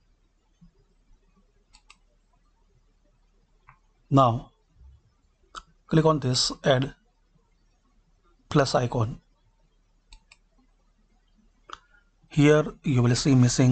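A mouse button clicks a few times.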